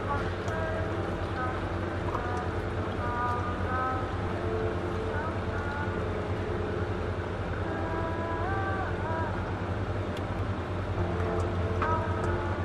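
A coffee machine hums and buzzes steadily.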